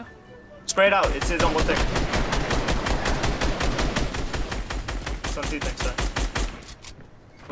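Gunshots fire in a fast, steady series.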